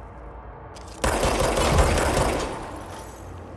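A loud blast bursts with a deep rumble and crackling debris.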